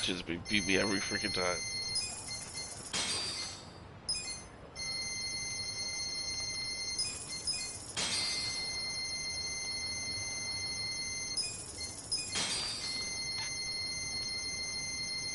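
Steady electronic background music plays.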